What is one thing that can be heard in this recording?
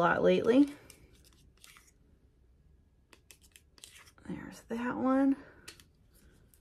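A small plastic cup clicks and taps as hands handle it.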